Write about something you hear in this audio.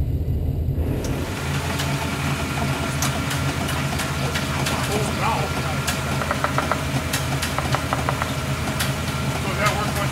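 A winch whines as it drags a car through mud.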